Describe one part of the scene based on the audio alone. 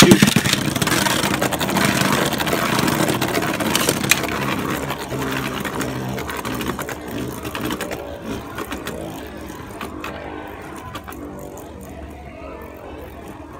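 Spinning tops whir and grind against a plastic arena, slowly fading.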